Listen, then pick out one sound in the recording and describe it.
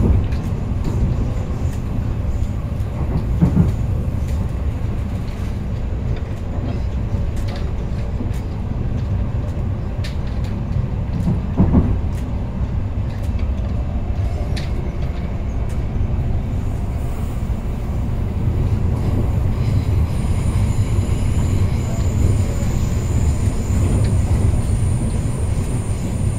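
Wheels click and clatter over rail joints.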